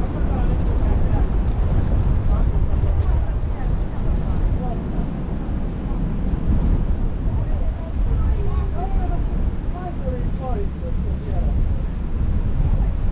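Wind rumbles steadily across open water.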